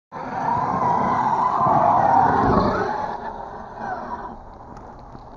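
A small electric motor whines loudly as a toy car speeds and jumps.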